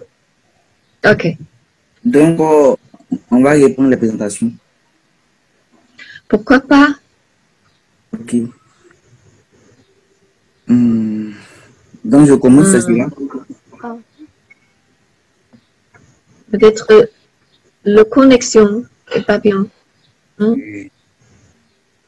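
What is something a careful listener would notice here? A young woman speaks calmly through an online call, in short phrases with pauses.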